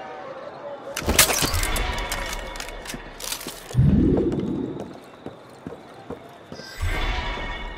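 Footsteps clatter quickly across roof tiles.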